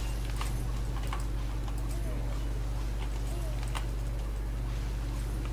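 Short clashing game sound effects ring out repeatedly.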